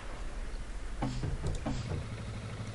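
A tank engine rumbles low and steady nearby.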